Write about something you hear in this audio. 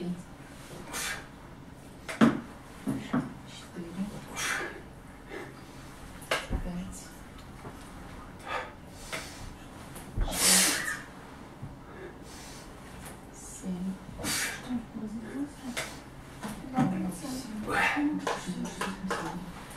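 A woman talks calmly, close by.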